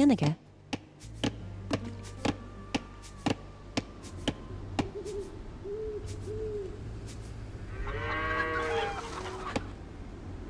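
Pickaxes tap and chip at stone.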